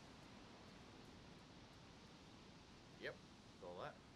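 A car hood pops open with a clunk.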